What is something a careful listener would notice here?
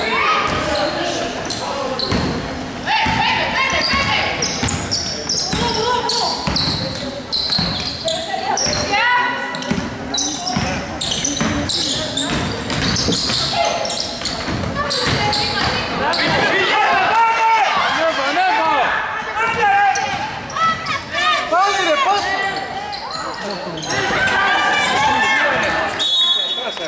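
Spectators chatter and cheer nearby.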